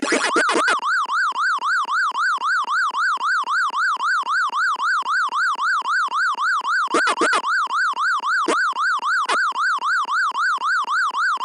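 An arcade game siren wails up and down in a steady rapid rhythm.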